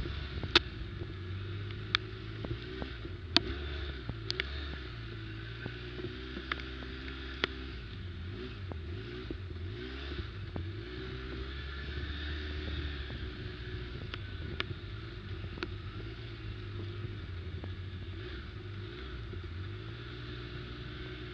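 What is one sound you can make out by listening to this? A quad bike engine rumbles steadily, revving up and down.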